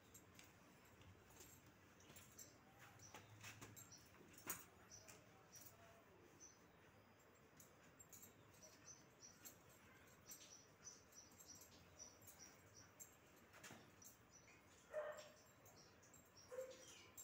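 Cloth rustles as fabric is handled and tucked.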